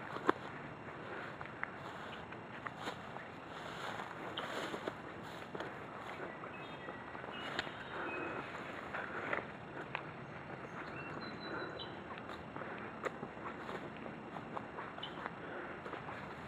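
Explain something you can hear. Grass and leaves rustle as someone pushes through undergrowth.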